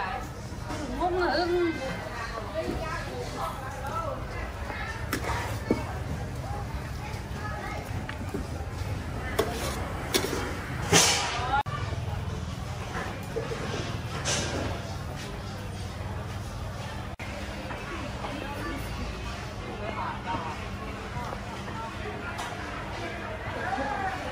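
People's voices chatter nearby in a large market hall.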